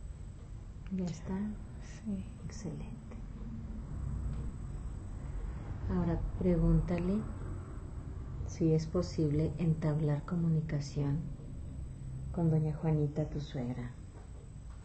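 A woman speaks softly and calmly close by, in short phrases.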